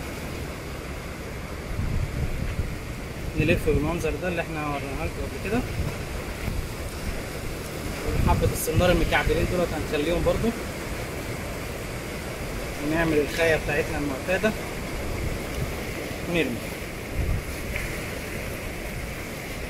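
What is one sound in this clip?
Wind blows outdoors in low gusts.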